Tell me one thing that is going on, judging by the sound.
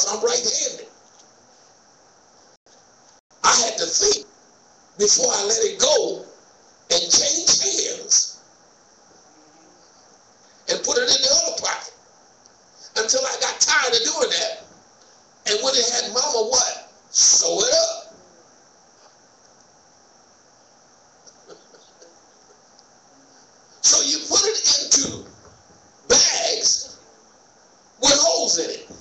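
A man speaks slowly and deliberately into a microphone, with pauses, in an echoing room.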